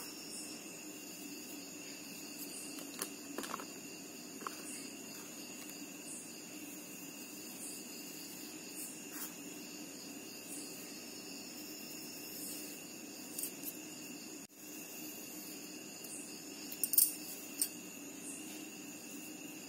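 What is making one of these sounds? Fingers softly sprinkle dry powder onto a hard floor.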